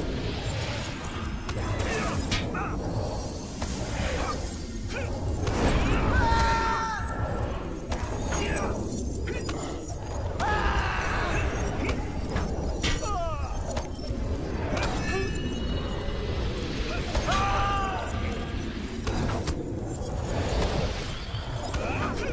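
Swords clash and strike repeatedly in a fight.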